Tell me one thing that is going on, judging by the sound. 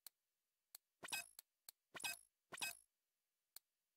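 Bright electronic chiming swishes sound a few times in quick succession.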